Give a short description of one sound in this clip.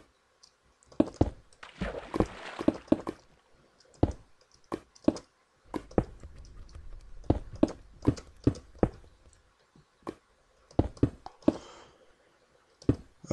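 Stone blocks are placed with short knocks.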